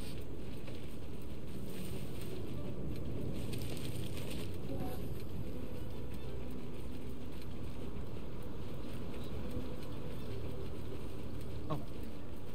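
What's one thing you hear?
Footsteps run quickly over soft sand.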